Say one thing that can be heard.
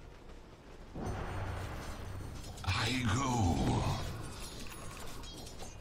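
Game spell effects crackle and boom during a fight.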